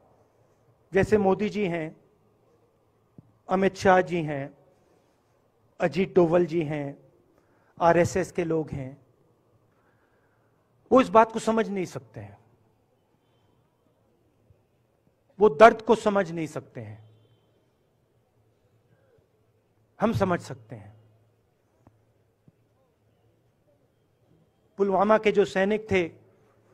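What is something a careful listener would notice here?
A middle-aged man speaks slowly and emphatically into a microphone, in short phrases with long pauses.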